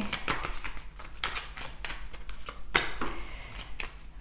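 A card is laid down on a table with a light tap.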